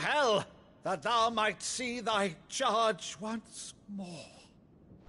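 An elderly man speaks loudly and theatrically, close by.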